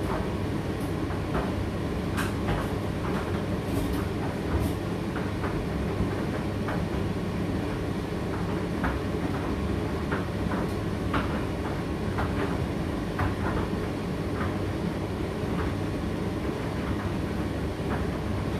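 Clothes tumble and knock inside a tumble dryer drum.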